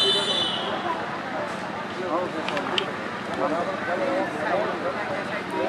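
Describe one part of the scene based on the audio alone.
A large outdoor crowd chatters and calls out.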